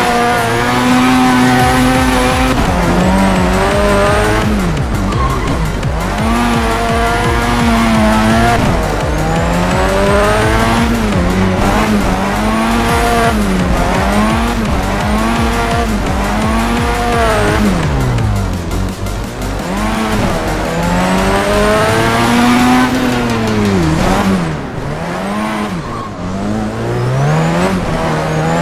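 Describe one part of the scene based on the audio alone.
A car engine revs up and down loudly as it shifts gears.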